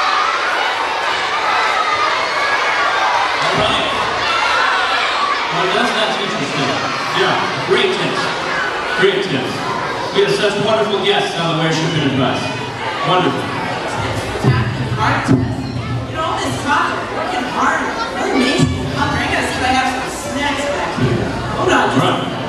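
A crowd of young people chatters in a large echoing hall.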